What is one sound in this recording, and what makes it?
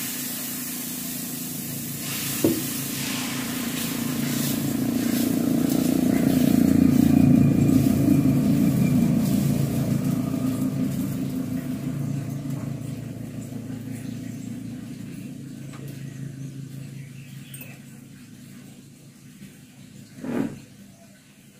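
Food sizzles in a hot pan, slowly quietening.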